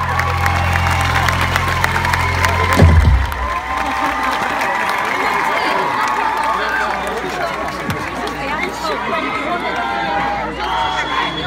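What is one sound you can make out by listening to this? A crowd cheers and chatters nearby.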